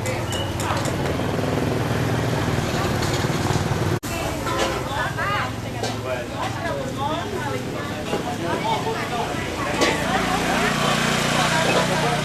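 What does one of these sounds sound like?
A motorbike engine rumbles past.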